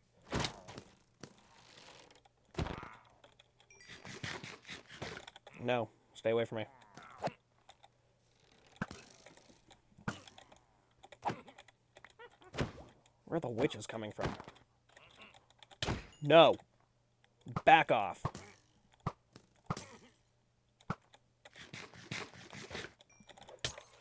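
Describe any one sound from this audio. A sword strikes with short, sharp hits.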